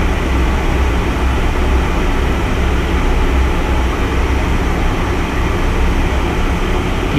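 Wind rushes past the cockpit canopy.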